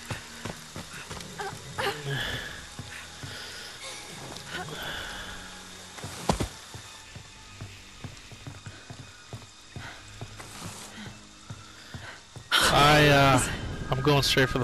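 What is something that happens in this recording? Footsteps tap on wooden floors and steps.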